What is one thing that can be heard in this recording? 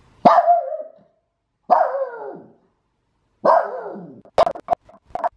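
A small dog howls with its head raised.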